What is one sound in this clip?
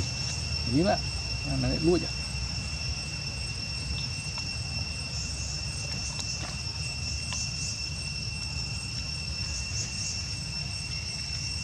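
Small monkeys rustle through dry leaves on the ground.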